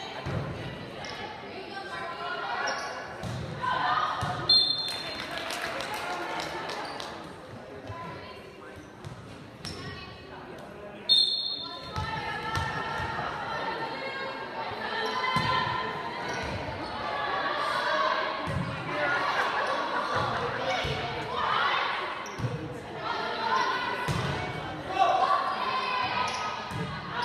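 A crowd of spectators cheers and chatters in a large echoing gym.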